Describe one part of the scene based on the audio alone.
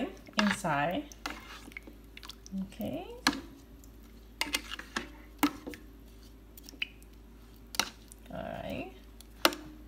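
Tongs clink against a pot.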